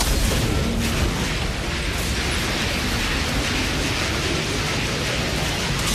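Gunfire and blasts ring out in rapid bursts.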